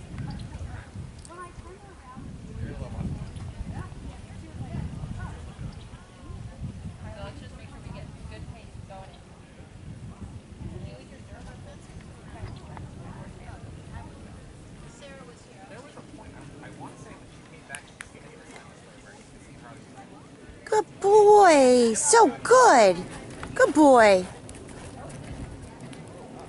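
Horse hooves thud on soft dirt at a canter.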